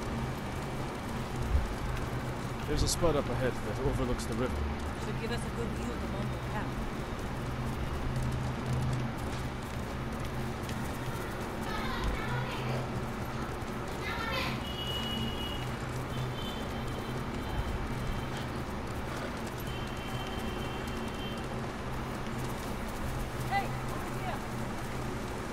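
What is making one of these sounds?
Horses gallop with thudding hooves on soft ground.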